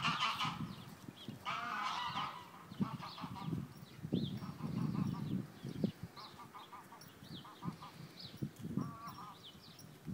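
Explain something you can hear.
A horse tears and munches grass close by.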